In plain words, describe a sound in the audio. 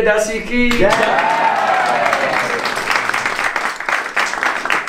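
People clap their hands in rhythm.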